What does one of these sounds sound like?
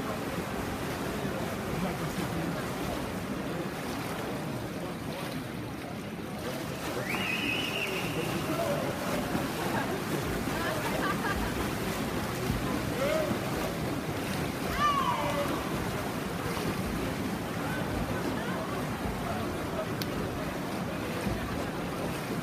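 Swimmers splash through the water in a large echoing hall.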